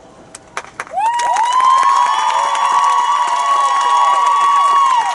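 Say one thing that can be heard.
A large brass band blasts a long, loud held chord outdoors.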